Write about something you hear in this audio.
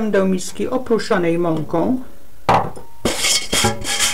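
A metal mixing bowl knocks as it is lifted and set down.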